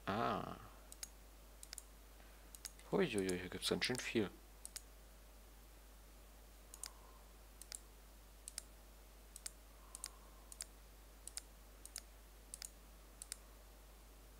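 Short soft clicks tick one after another.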